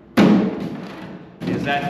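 A hollow plastic panel knocks against a table.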